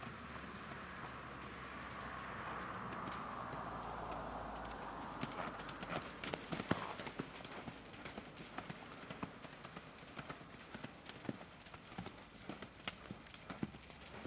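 A horse's hooves thud on soft sand at a canter.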